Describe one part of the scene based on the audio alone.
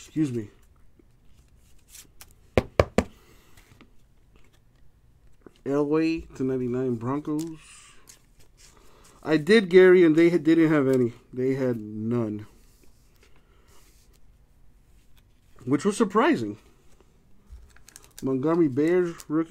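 Trading cards slide and rustle softly in hands.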